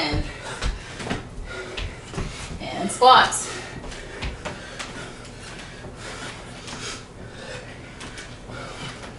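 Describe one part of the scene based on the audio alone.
Feet thump and shuffle on a wooden floor during exercise.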